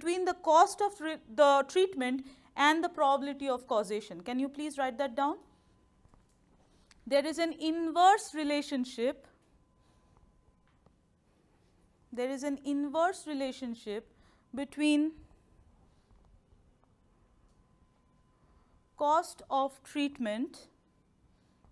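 A woman speaks calmly through a close microphone, in bursts with pauses.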